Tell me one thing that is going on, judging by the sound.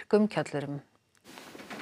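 A woman speaks calmly and clearly into a microphone.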